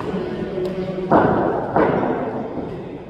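Footsteps thud on a hard floor as a bowler runs up.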